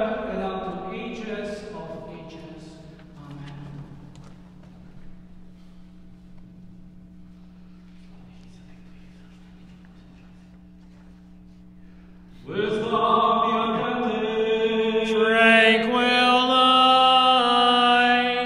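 A man chants in a slow, sung voice, echoing in a large hall.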